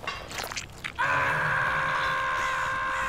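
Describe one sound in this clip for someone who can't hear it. A chainsaw roars loudly and steadily.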